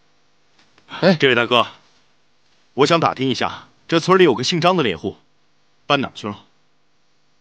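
A man speaks politely and calmly, close by.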